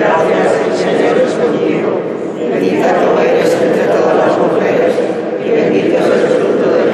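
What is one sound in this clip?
A large crowd sings together in a large echoing hall.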